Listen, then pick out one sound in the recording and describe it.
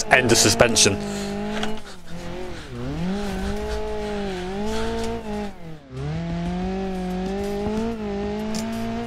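A car engine hums steadily, rising and falling in pitch as it revs.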